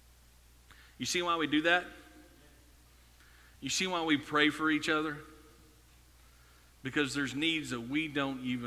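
A man speaks with animation through a microphone in an echoing hall, in short bursts with pauses.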